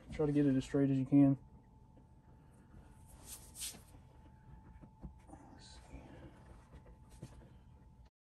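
A piece of leather slides and taps softly on a cutting mat.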